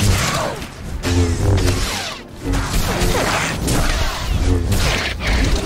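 Energy blasts zap and crackle.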